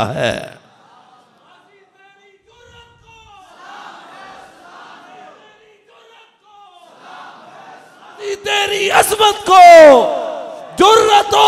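An elderly man speaks through a microphone, slowly at first and then with rising passion.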